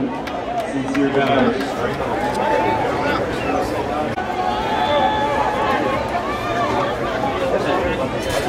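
A crowd of people chatter and call out across an open field.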